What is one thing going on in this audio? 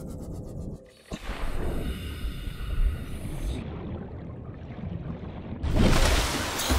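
Water bubbles and swirls underwater.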